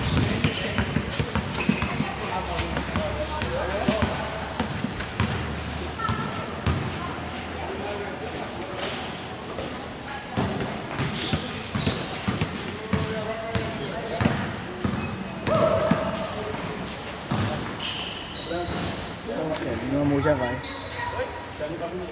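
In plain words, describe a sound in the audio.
A ball bounces on a hard court, echoing under a large roof.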